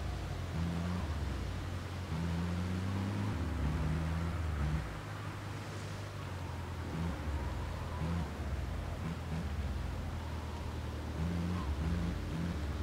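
An ambulance engine hums as the van drives along a road.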